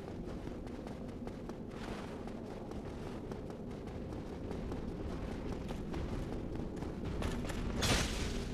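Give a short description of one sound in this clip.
Armoured footsteps clatter on stone floors and stairs.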